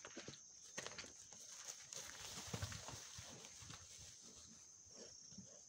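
Cattle hooves thud and rustle on grass.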